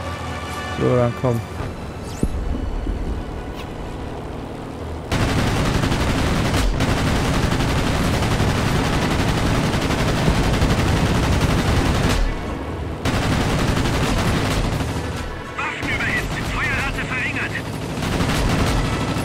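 A propeller plane engine drones loudly.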